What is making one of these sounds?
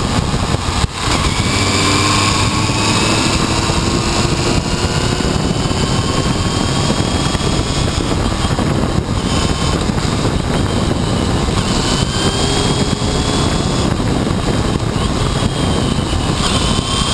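A motorcycle engine hums and whines steadily, close up, shifting pitch as it speeds along.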